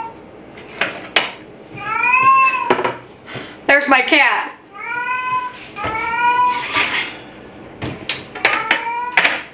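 Metal baking pans clank on a counter.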